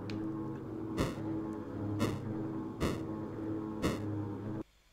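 Bright magical chimes ring out in a steady beat.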